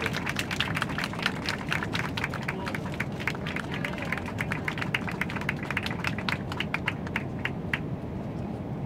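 A group of people applaud with quick, sharp claps.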